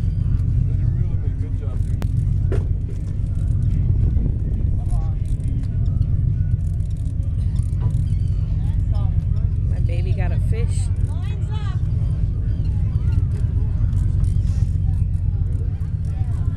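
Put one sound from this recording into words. Children talk nearby in the open air.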